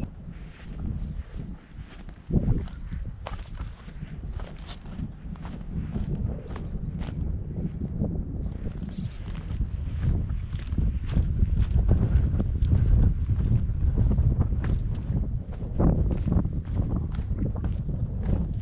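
Footsteps crunch on rock and gravel.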